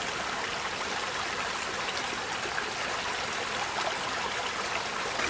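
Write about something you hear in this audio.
A shallow stream trickles and babbles steadily over stones close by.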